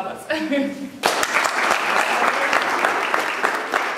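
A small group claps and cheers.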